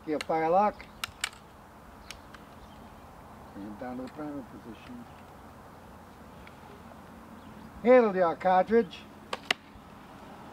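Musket locks click sharply.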